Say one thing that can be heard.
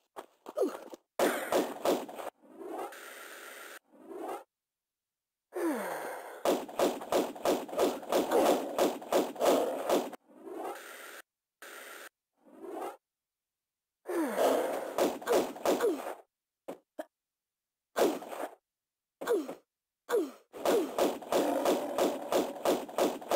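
Pistols fire rapid bursts of shots.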